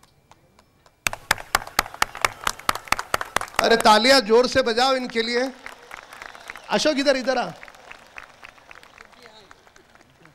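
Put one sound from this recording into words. People clap their hands rhythmically.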